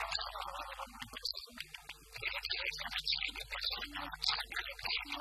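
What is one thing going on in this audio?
A boy sings loudly.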